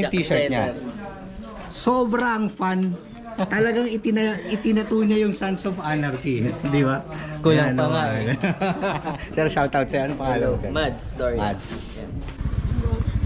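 A woman laughs and talks close by.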